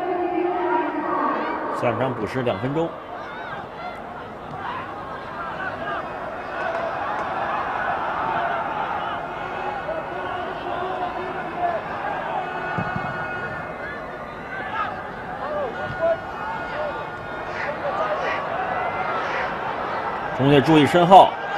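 A large stadium crowd murmurs and cheers in the distance.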